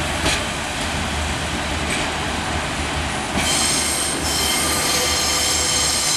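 A diesel train approaches, its engine rumbling.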